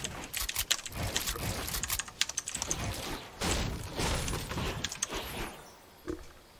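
Game building pieces snap into place with rapid clicks.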